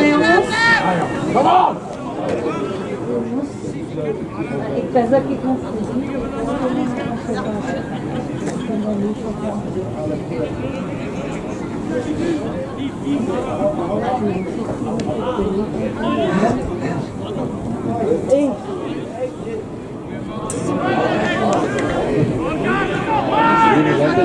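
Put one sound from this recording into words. Players shout to each other across an open pitch.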